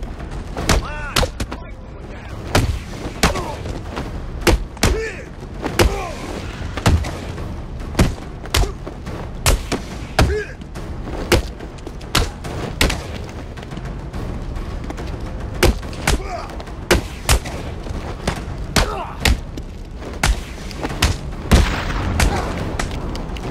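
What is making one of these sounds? Men grunt and cry out as they are struck.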